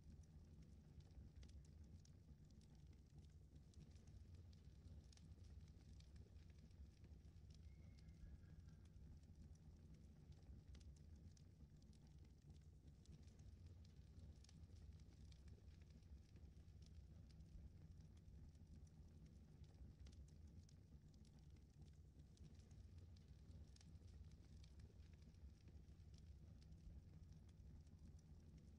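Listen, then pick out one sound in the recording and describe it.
A machine hums with a steady low drone.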